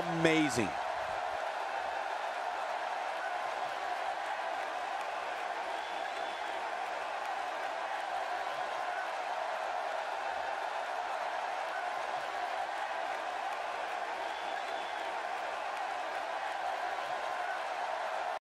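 A large arena crowd cheers in a steady roar.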